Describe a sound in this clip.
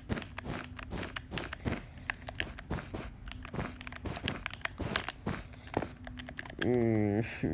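Blocks are placed one after another with quick soft clicks.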